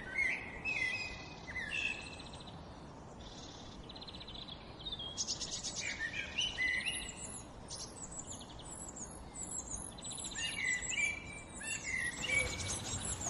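Birds call with short, sharp chirps close by.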